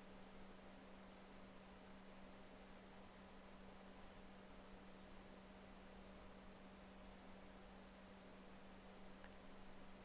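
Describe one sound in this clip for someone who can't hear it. A plastic rib scrapes softly against wet clay.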